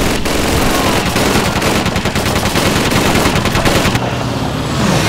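A rifle fires rapid, sharp shots close by.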